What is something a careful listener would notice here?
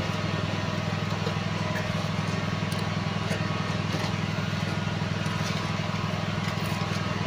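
A shovel scrapes and digs into loose soil.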